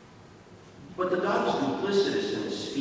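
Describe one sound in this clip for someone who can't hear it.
An elderly man speaks through a microphone in a large echoing hall.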